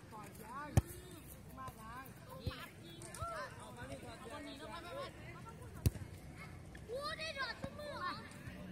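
Young players shout and call to each other in the distance outdoors.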